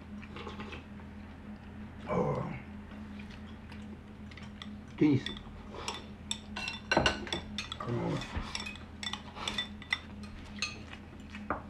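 An elderly man slurps food noisily.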